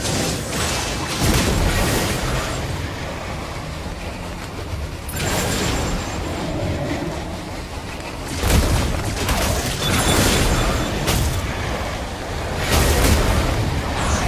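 Magic blasts and weapon strikes burst in a fight.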